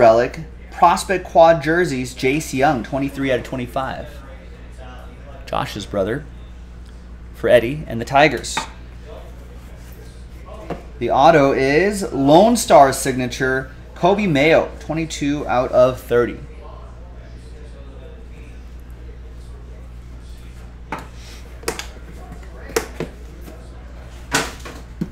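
A plastic card case clicks and taps in hands.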